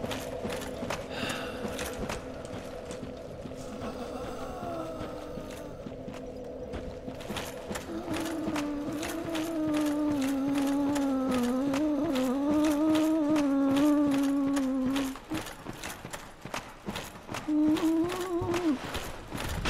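Armoured footsteps crunch on rock.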